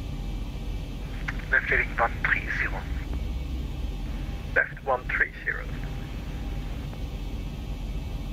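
A low, steady aircraft engine drone hums throughout.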